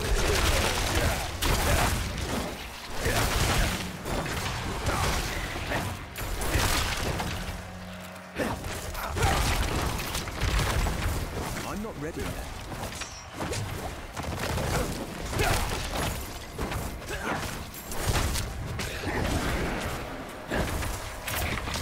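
Fiery blasts burst and roar with crackling impacts.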